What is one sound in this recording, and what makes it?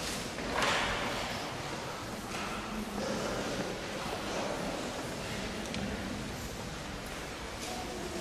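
A man speaks quietly in a large echoing hall.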